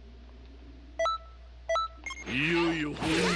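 Short electronic beeps sound as a game menu is browsed.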